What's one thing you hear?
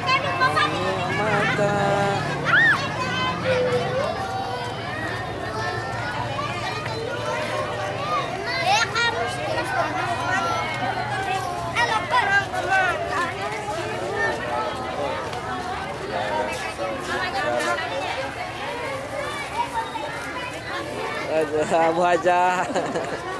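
Children's voices call out loudly close by.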